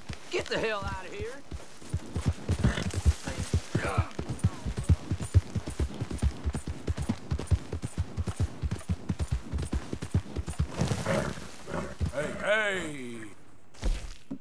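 A horse's hooves gallop quickly over soft ground.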